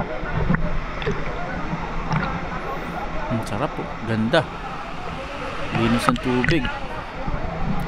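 A waterfall pours steadily into a pool nearby.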